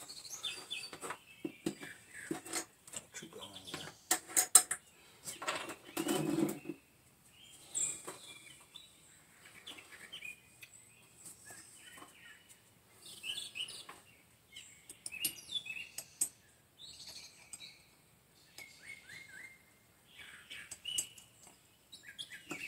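Glass clinks and taps as a dropper is handled in a small bottle.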